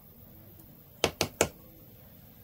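A small jar knocks sharply a few times.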